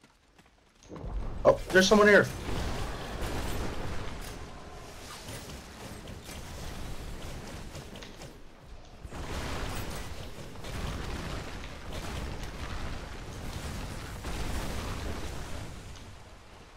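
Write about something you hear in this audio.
Explosions boom and crackle loudly, again and again.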